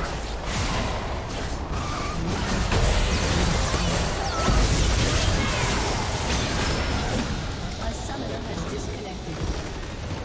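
Game spell effects blast and crackle in a fierce battle.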